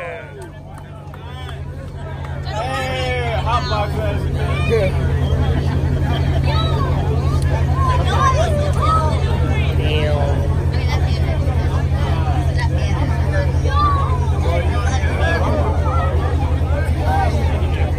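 A crowd of young men shouts and cheers outdoors.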